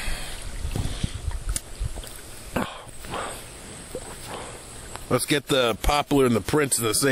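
Water laps gently.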